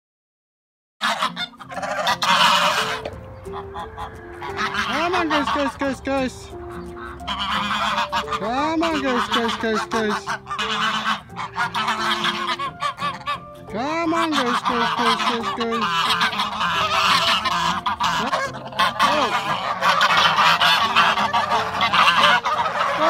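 A flock of geese honks loudly and noisily close by.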